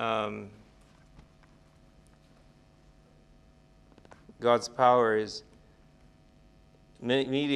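An elderly man reads aloud slowly and calmly, close by, with long pauses.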